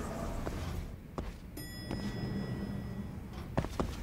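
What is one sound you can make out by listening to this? An elevator door slides open.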